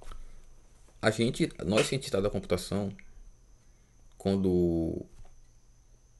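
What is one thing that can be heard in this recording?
A man speaks briefly and calmly close by.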